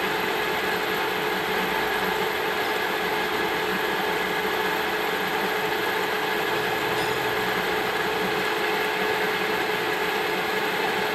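Coolant sprays and hisses over the metal.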